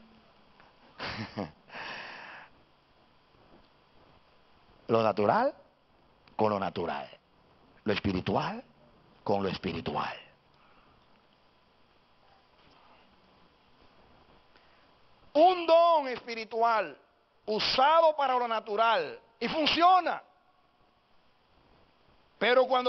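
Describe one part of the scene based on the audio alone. A middle-aged man preaches with animation through a microphone and loudspeakers, in bursts with pauses.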